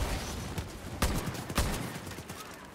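A pistol fires a few sharp shots.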